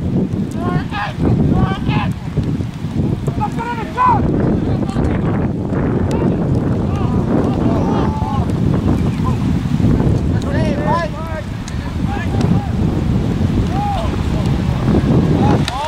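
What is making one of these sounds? Spectators shout and cheer from nearby.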